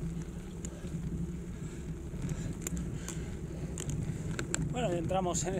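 Wind rushes steadily over a microphone on a moving bicycle.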